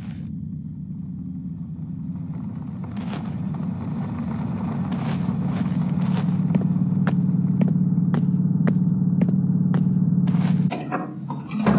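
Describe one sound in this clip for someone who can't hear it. A bus engine rumbles close by, growing louder.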